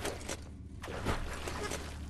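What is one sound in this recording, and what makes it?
A big splash bursts in water.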